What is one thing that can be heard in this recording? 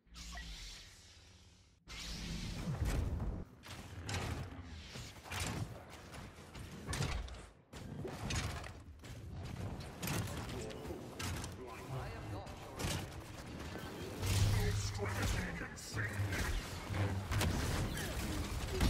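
Lightsabers hum and swish.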